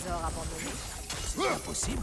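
A metal chain rattles and whips out.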